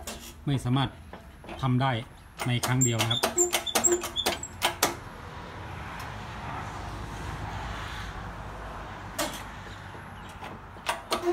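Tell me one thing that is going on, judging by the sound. A press squeezes a metal shaft with creaks and clicks.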